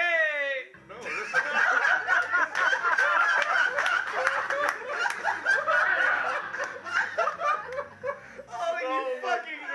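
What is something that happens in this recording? A group of young men laugh loudly into microphones.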